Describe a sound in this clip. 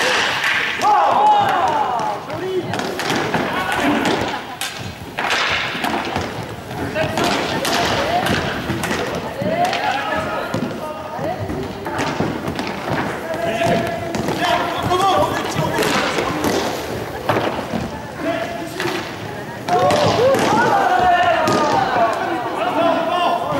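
Hockey sticks clack against a ball and the hard floor.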